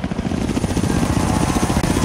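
A helicopter's rotor thumps rapidly.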